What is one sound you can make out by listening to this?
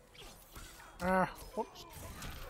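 A chain rattles and whips through the air.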